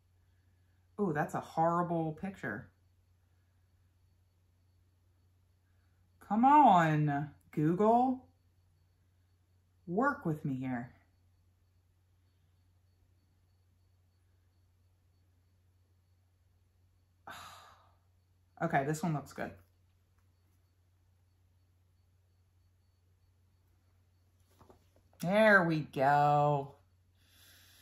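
A young woman speaks close to a microphone, in short bursts with pauses.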